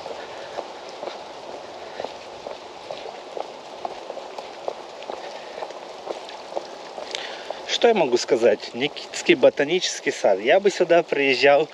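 Footsteps tap steadily on a paved path.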